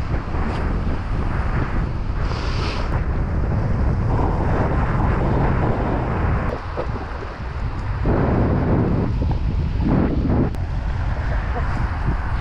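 Wind gusts loudly across the microphone outdoors.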